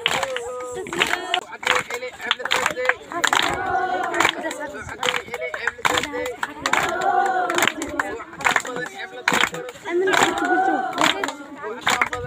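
A group of men and women sing together outdoors.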